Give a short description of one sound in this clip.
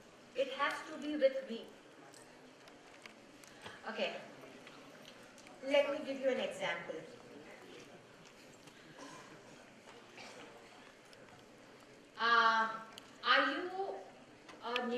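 A woman speaks into a microphone over loudspeakers in a large echoing hall, pausing between phrases.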